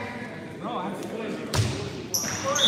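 A volleyball is struck with a hand and thuds.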